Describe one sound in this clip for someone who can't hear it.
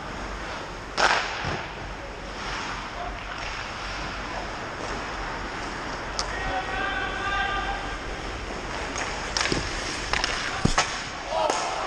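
Hockey sticks clack sharply against the puck.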